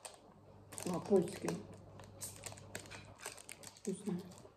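Foil crinkles and rustles in a woman's hands.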